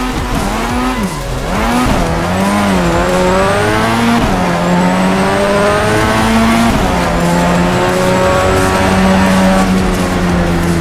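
A car engine revs hard, dropping in pitch with each gear change.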